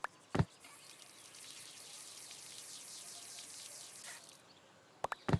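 Water hisses as it sprays from a garden hose.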